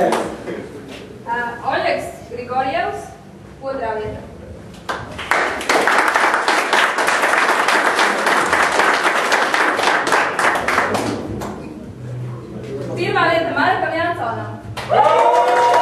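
A woman speaks aloud to a group in an echoing hall.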